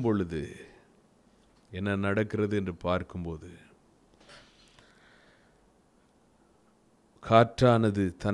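A middle-aged man reads aloud calmly into a microphone, with pauses.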